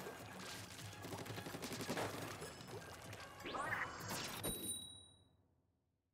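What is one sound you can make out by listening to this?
Video game music and sound effects play, then stop.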